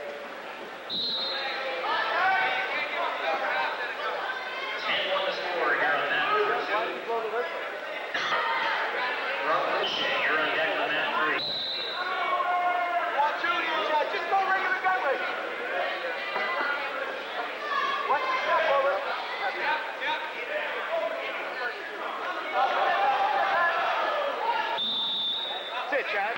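A referee blows a whistle.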